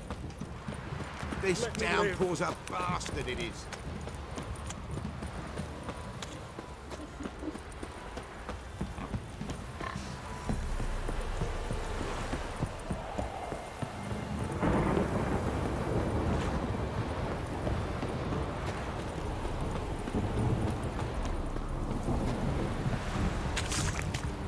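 Footsteps run quickly over dirt and wooden planks.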